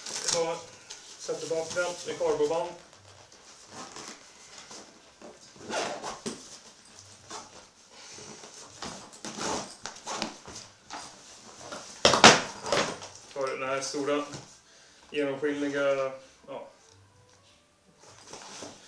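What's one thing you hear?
A suitcase's fabric rustles and its zipper rasps as it is handled.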